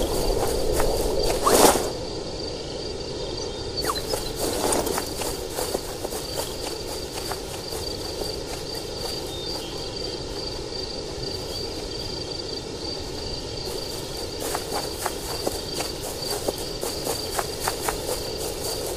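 Soft footsteps patter on the ground.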